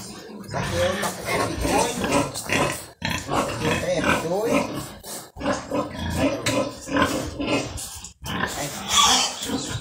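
A pig grunts close by.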